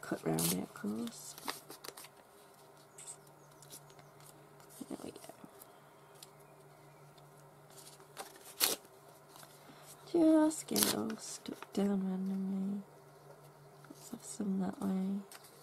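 Paper rustles and crinkles as torn pieces are pressed down by hand.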